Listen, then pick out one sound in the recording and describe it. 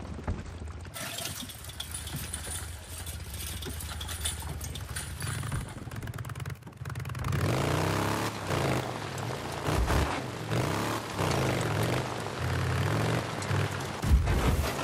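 A motorcycle engine revs as the bike rides along.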